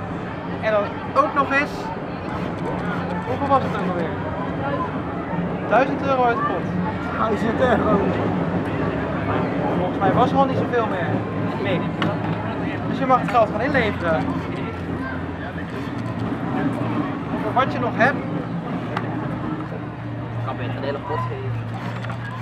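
Several young men talk and laugh together close by.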